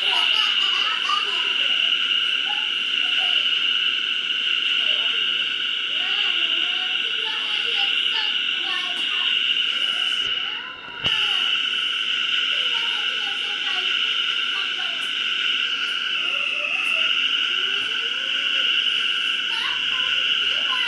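A train's electric motor whines steadily as it runs at speed.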